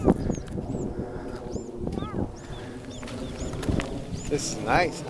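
Stroller wheels crunch and rattle over a gravel path.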